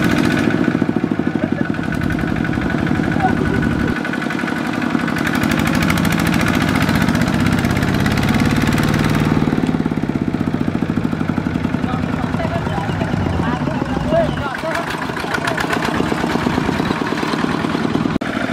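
A two-wheel tractor engine chugs loudly and steadily close by.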